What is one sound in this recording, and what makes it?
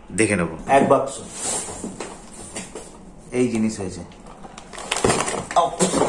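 A cardboard box rustles and thumps as it is handled.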